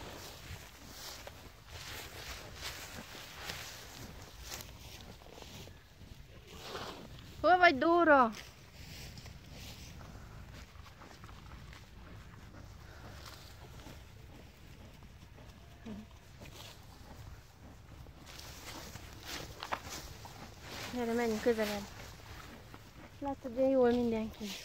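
A woman talks calmly and close by, outdoors.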